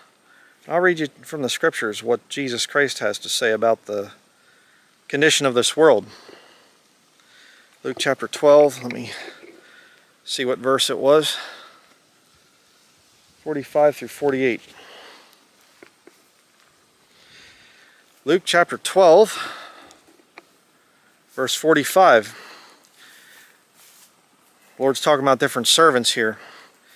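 A middle-aged man speaks calmly and close up, in short phrases with pauses.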